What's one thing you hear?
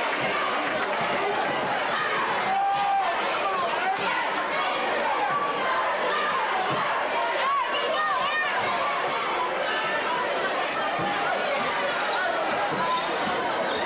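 A large crowd murmurs and chatters in an echoing gym.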